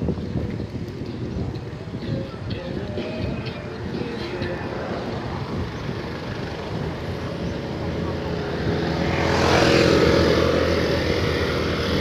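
Wind rumbles and buffets outdoors.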